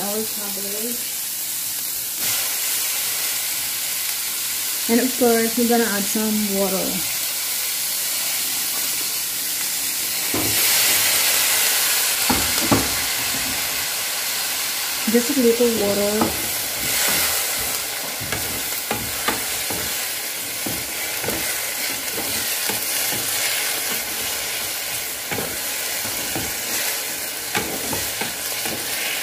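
Vegetables sizzle in hot oil in a pan.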